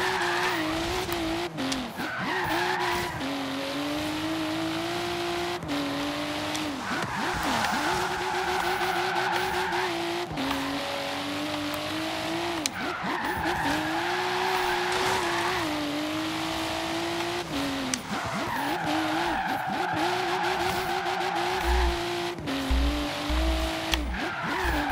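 A car engine revs hard, rising and dropping in pitch with each gear change.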